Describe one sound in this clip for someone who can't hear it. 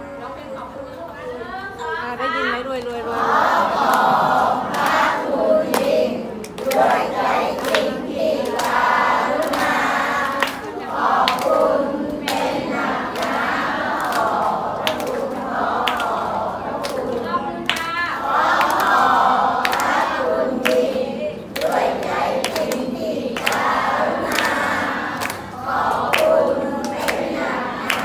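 A large crowd of children and adults chatters close by.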